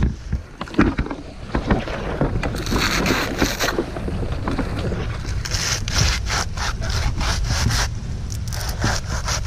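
Wind blows across a microphone outdoors.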